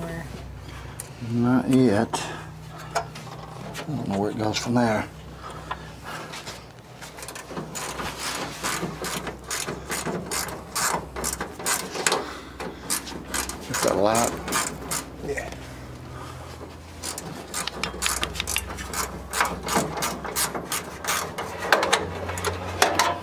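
Metal tools clank and knock against car parts.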